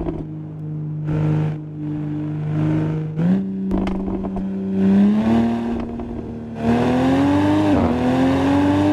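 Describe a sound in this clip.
A car engine roars steadily and climbs in pitch as it speeds up.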